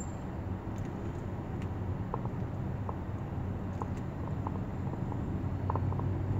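A motorcycle engine buzzes close by.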